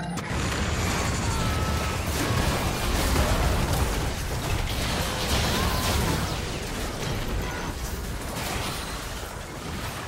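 Spell effects whoosh and crackle during a fast video game battle.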